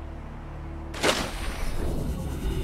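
A small submarine splashes down into water.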